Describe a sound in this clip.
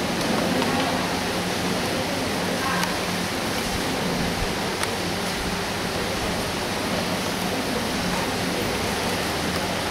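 An elderly monk preaches calmly through a microphone and loudspeakers in a large echoing hall.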